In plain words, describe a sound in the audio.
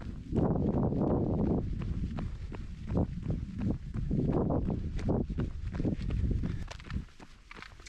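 Wind buffets a nearby microphone outdoors.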